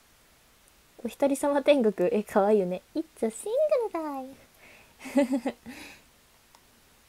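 A young woman speaks cheerfully and laughs, close to a microphone.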